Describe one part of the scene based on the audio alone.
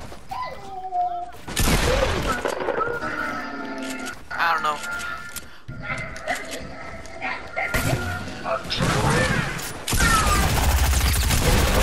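Wooden walls and ramps snap into place with quick knocks.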